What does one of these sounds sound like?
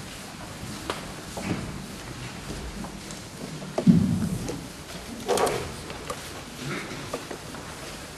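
An audience shifts and rustles quietly in a large echoing hall.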